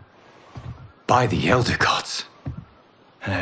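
A man speaks with surprise, close by.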